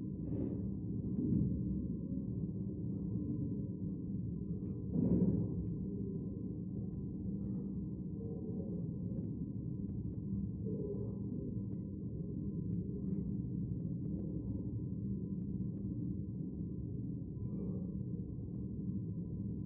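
Men and women murmur quietly in a large, echoing hall.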